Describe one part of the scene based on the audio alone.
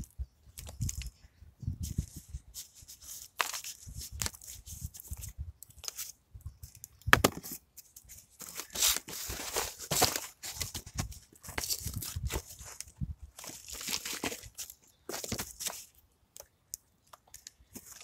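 Gloved hands rustle and scrape cardboard.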